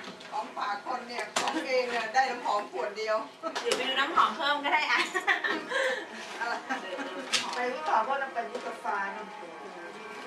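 A young woman talks and laughs with animation close by.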